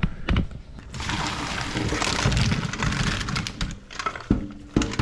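Hot water and food pour from a pot into a colander in a sink.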